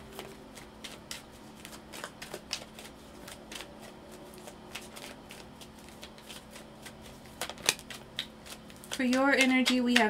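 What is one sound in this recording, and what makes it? Cards shuffle and snap together in hands.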